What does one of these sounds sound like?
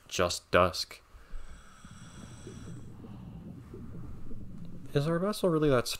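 Deep water rumbles softly and steadily.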